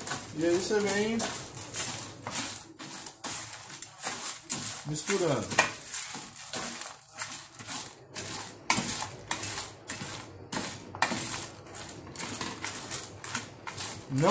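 A wooden spoon stirs dry seeds, rattling and scraping in a metal tray.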